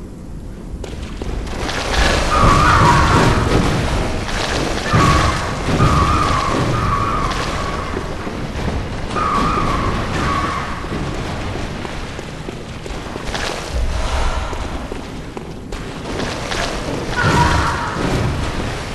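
Footsteps splash and squelch through shallow water.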